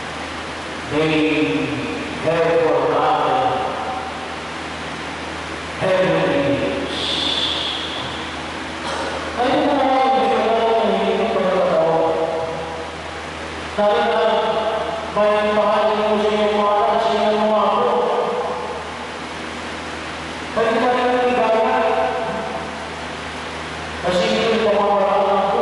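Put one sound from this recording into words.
A man speaks or chants slowly through a microphone and loudspeakers, echoing in a large hall.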